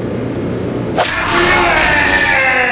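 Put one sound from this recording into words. A bat strikes a body with a heavy whack.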